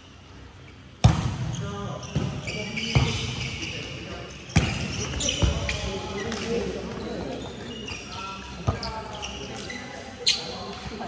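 A volleyball is struck with sharp slaps that echo through a large hall.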